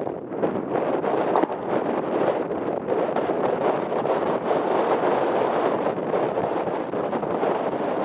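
Wooden planks knock and clatter as they are stacked.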